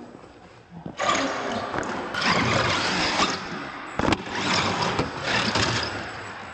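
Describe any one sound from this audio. A small electric motor whines as a toy truck drives.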